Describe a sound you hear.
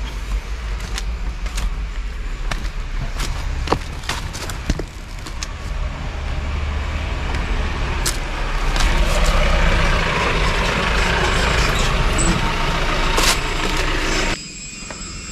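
Footsteps crunch on dry leaves and rocks.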